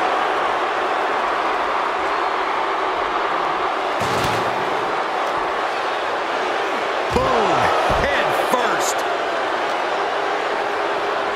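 A large crowd cheers steadily.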